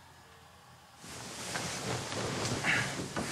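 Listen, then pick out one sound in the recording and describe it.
Bedding rustles as blankets are pulled over.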